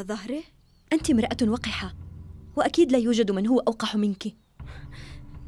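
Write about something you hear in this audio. A second young woman answers firmly, close by.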